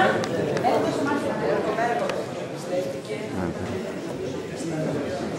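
A crowd of men and women chatters in a room.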